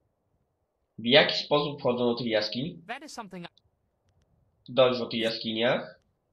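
A young man speaks calmly, close to a microphone.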